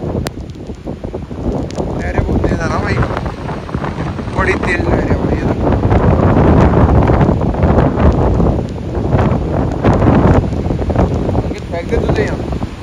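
Rough surf crashes and roars onto the shore.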